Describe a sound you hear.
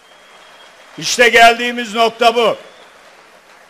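A man speaks emphatically through a microphone in a large hall.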